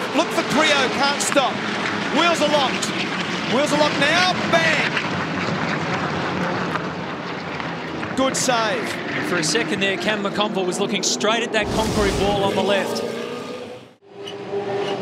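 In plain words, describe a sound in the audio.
Race car engines rumble as cars drive past slowly.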